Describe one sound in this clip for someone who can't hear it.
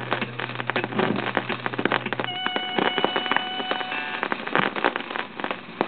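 Music plays from a record on a turntable, with a dense, lively beat.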